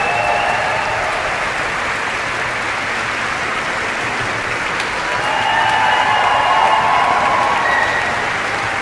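Audience members cheer and whoop.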